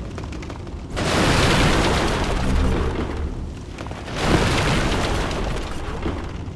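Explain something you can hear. Wooden crates smash and splinter apart.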